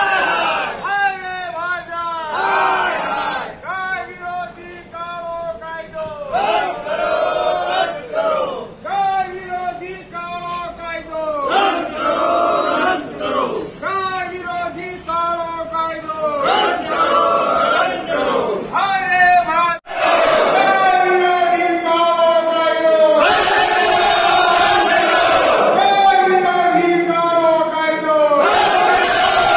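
A group of men loudly chant slogans in unison.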